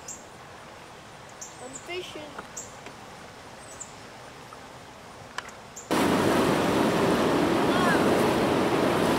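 A river rushes and splashes steadily.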